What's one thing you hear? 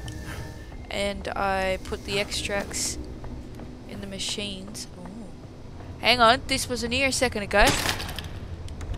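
A young woman talks into a close microphone, with animation.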